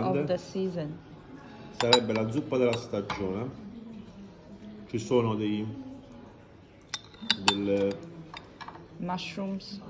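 A spoon clinks against a ceramic pot.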